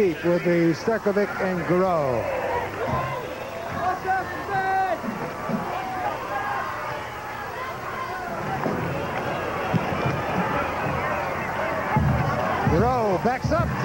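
A large stadium crowd cheers and shouts.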